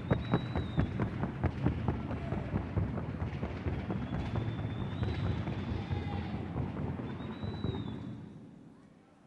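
A horse's hooves clatter quickly on hollow wooden boards.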